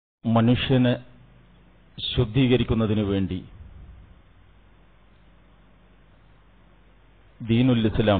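A middle-aged man speaks in short bursts with pauses, heard through a microphone.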